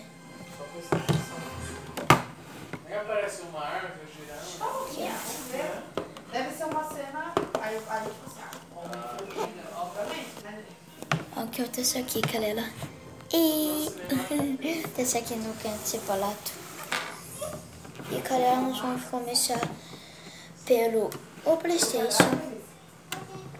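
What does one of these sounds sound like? Plastic game controllers clatter on a table.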